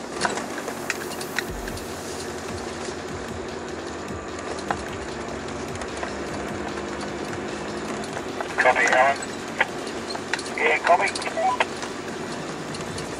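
Tyres crunch and rattle over loose stones.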